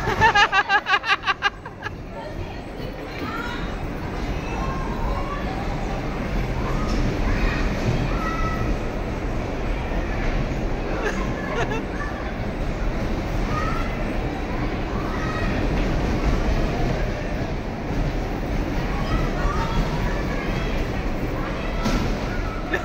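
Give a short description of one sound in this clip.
Bumper cars knock into each other with dull thuds.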